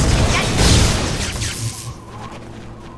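A magic spell bursts with a loud whoosh.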